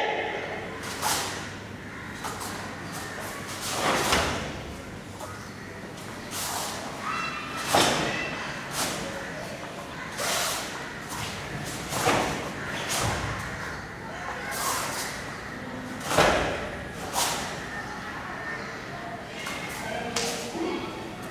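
A karate uniform snaps sharply with each punch and kick.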